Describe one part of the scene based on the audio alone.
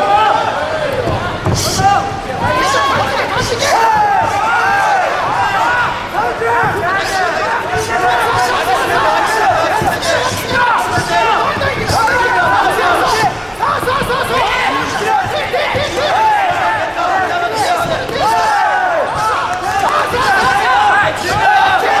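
Punches and kicks thud against bodies.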